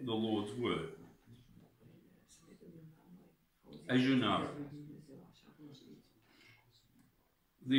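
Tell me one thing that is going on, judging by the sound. A middle-aged man speaks quietly between the chanting.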